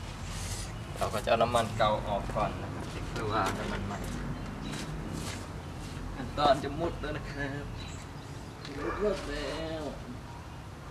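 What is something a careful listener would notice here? A man talks casually nearby, outdoors.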